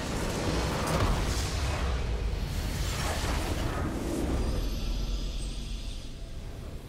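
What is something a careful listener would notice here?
A structure explodes with a heavy rumbling blast.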